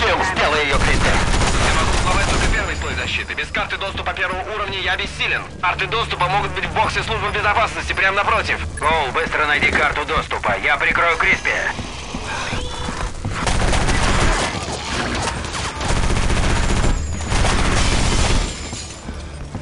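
Two automatic guns fire in rapid bursts.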